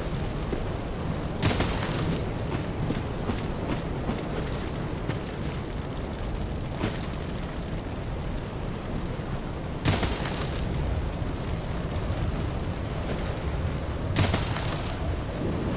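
Footsteps thud on wood.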